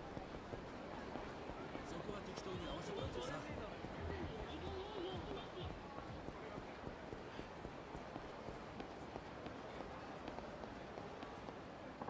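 Footsteps run along a hard street.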